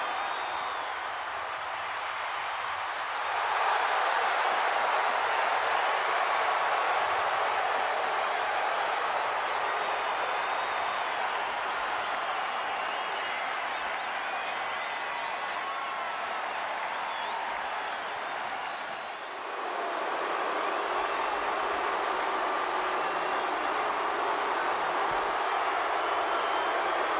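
A large crowd cheers and roars in a huge open arena.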